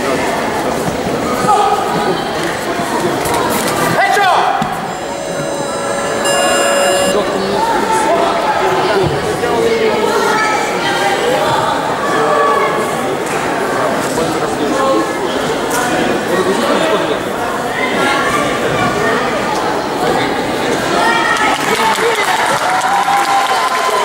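Voices of a crowd chatter throughout, echoing in a large hall.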